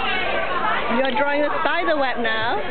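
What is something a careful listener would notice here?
A young child's high voice calls out close by.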